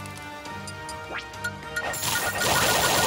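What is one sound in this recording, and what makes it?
Soft music plays from a video game menu.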